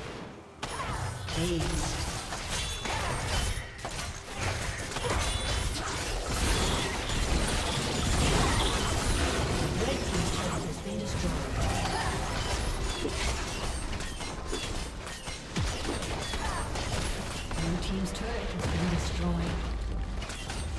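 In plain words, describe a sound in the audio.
Game spell effects whoosh and crackle in a busy battle.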